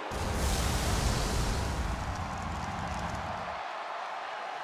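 Pyrotechnic flames burst with a deep roar.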